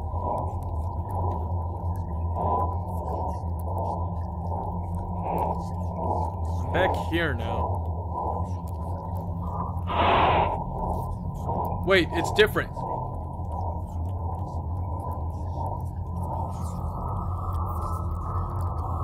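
A young man speaks calmly into a headset microphone, close by.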